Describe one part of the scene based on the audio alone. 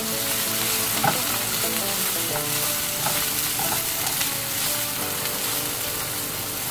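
A spatula scrapes and stirs against a pan.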